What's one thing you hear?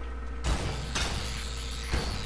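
A game weapon hums and crackles with energy.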